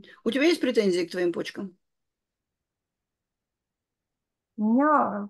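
An older woman talks calmly over an online call.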